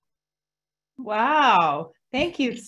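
A woman laughs and speaks excitedly over an online call.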